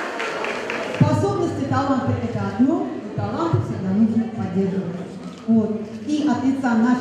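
A woman speaks calmly into a microphone through a loudspeaker.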